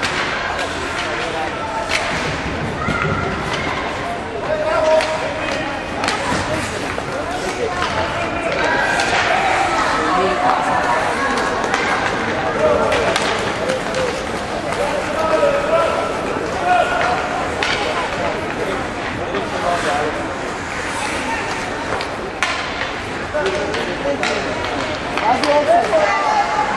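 A crowd of voices calls out and chatters in an echoing hall.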